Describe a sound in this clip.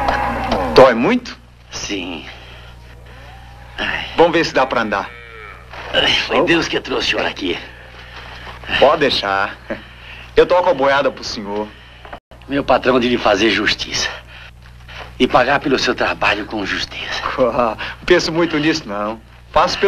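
A young man speaks urgently and close by.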